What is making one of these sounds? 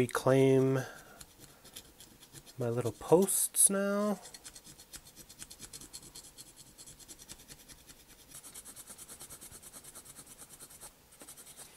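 A blade scrapes at a small plastic model.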